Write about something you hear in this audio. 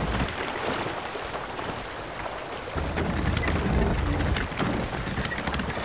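Wind blows through a ship's sails and rigging.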